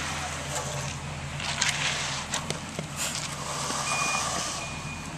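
A hand tool scrapes through wet concrete.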